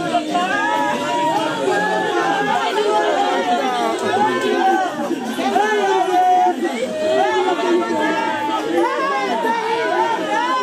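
A group of men and women sing together nearby.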